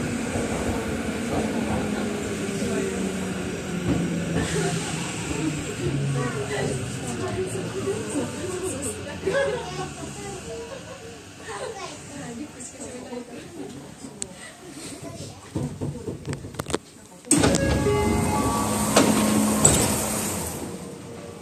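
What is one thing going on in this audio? An electric commuter train rumbles into a station, heard from inside.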